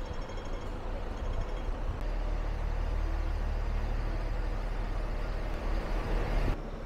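Street traffic rumbles steadily nearby.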